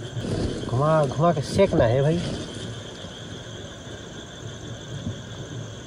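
A gas camping stove hisses steadily.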